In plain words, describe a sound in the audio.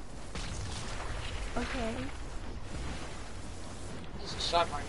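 Water swishes and burbles as a figure swims.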